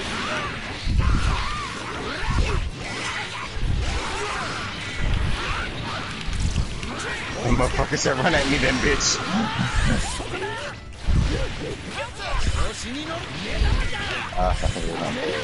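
Heavy punches and kicks thud in quick bursts.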